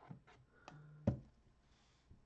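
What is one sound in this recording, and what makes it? A cardboard box is set down with a soft thud.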